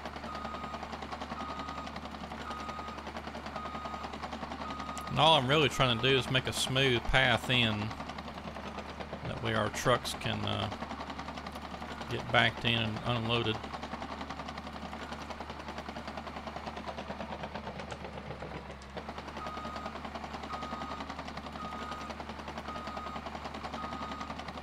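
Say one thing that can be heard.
A heavy bulldozer engine drones steadily.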